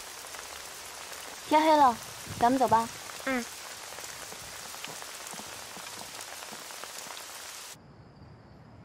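Rain patters on umbrellas.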